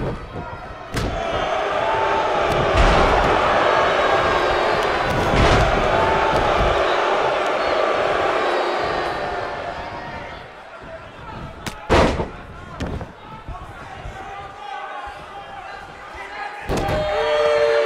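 Bodies slam heavily onto a ring mat.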